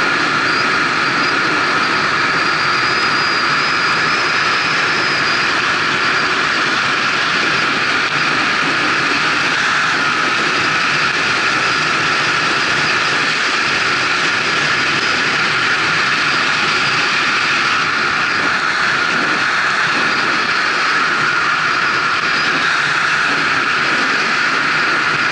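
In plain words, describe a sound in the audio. Wind roars loudly and steadily past a fast-moving vehicle.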